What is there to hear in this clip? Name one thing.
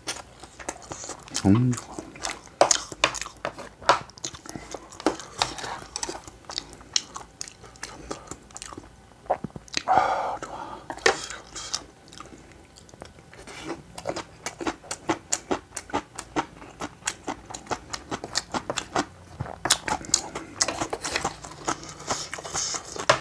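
Utensils scrape and clink against a pan.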